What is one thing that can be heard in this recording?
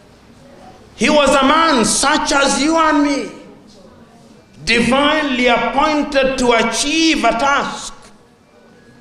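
A man speaks forcefully into a microphone, with pauses.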